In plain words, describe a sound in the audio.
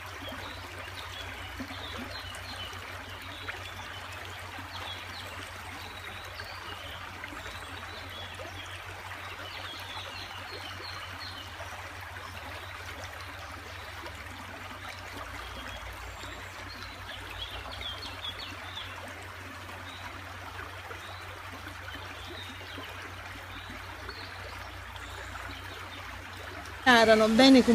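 A shallow stream rushes and babbles steadily over stones.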